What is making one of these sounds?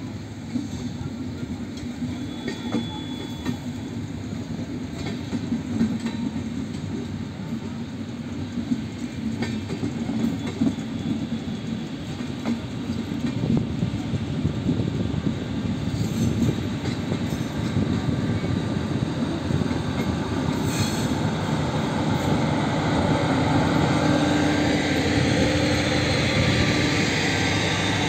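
A passenger train rumbles past close by, its wheels clattering rhythmically over the rail joints.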